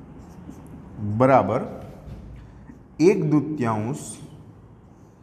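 A man speaks calmly nearby, in short phrases.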